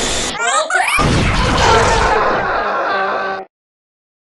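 An explosion bursts.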